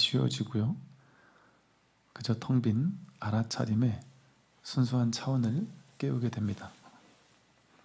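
A man chants slowly in a calm, resonant voice nearby.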